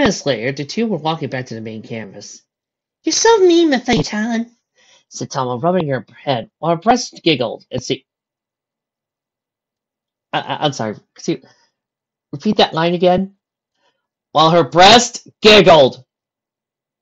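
A young woman speaks sharply and with animation.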